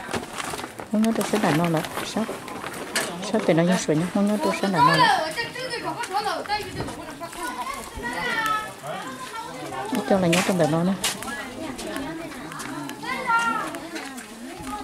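Adults talk nearby outdoors in casual voices.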